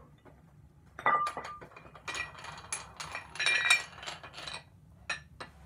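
Metal weight plates clank and scrape.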